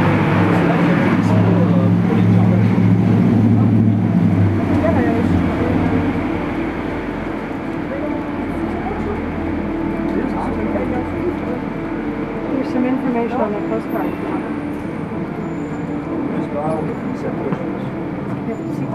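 A grand piano plays a slow, sustained melody close by.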